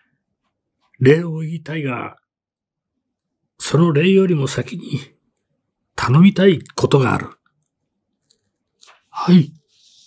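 A man reads aloud calmly and closely into a microphone, with pauses.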